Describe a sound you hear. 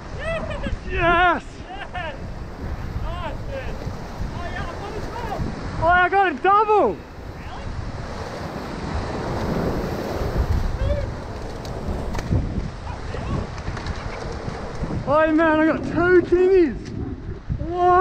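Ocean waves crash and wash against rocks.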